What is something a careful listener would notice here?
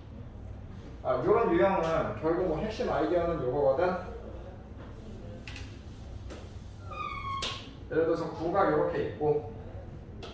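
A young man speaks calmly nearby, with pauses.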